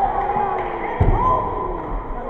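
A body thuds heavily onto a floor mat.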